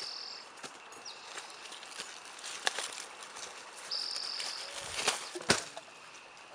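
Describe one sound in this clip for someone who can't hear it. Footsteps crunch on dry twigs and leaves.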